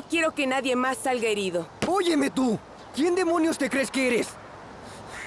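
A young woman speaks with emotion nearby.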